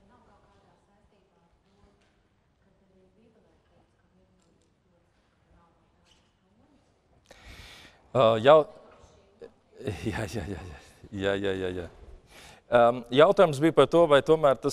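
A man speaks calmly to an audience.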